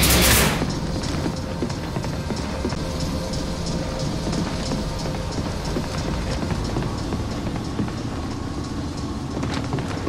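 Heavy boots clank steadily on a metal floor.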